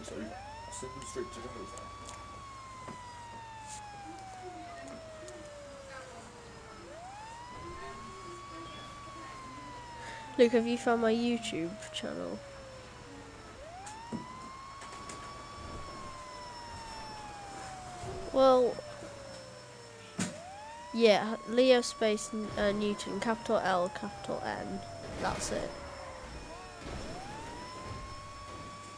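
A fire engine siren wails, rising and falling over and over.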